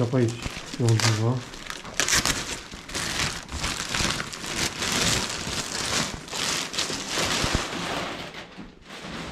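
Plastic wrapping crinkles and rustles loudly close by.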